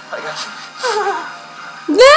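A young woman screams in fright.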